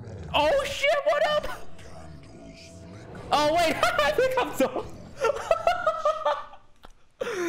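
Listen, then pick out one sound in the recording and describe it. A young man talks excitedly into a close microphone.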